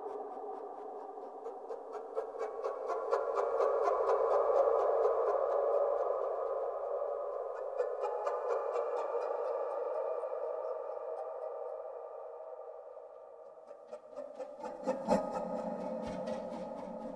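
Pan flutes play sustained breathy chords that swell and fade.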